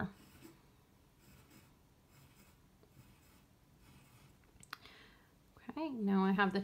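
A pencil scratches lightly on paper.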